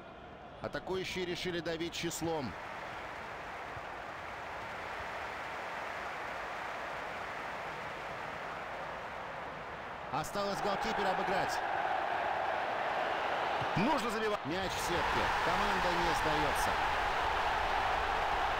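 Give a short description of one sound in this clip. A large stadium crowd roars steadily and swells into loud cheering.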